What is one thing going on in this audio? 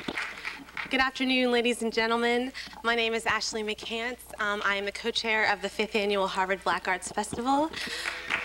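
A young woman speaks calmly into a microphone over loudspeakers.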